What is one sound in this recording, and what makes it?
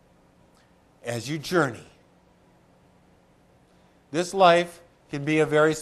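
A middle-aged man speaks earnestly into a close microphone, with pauses between phrases.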